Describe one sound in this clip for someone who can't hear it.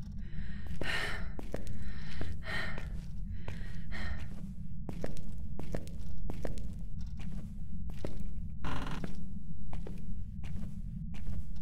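Slow footsteps tread on a hard floor.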